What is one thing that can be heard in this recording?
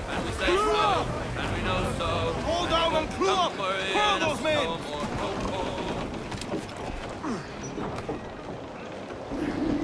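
Waves lap and splash gently around a ship.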